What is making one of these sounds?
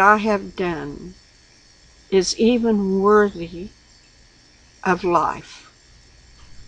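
An elderly woman speaks calmly and slowly in short phrases, close to a microphone.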